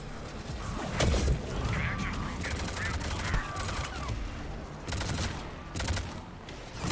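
A sniper rifle fires single loud shots.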